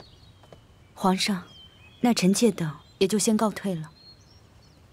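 A woman speaks calmly and softly.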